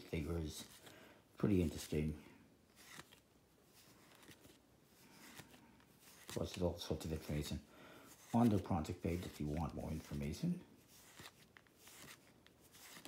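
Playing cards softly slide and rustle against each other.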